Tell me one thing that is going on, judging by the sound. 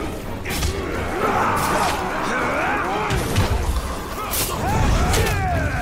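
Blades clash and slash in a fierce fight.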